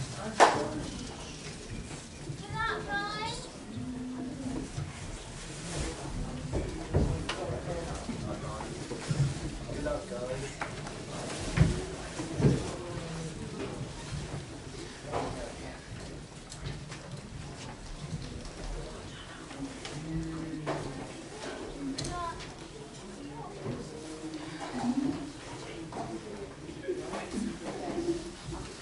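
A crowd of people chatter and call out in a large echoing hall.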